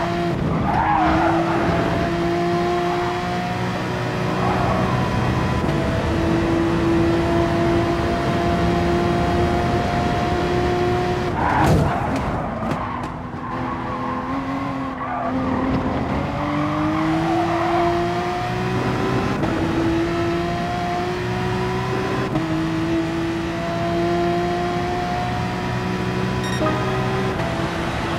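A racing car engine roars steadily, its pitch climbing and then dropping with each gear change.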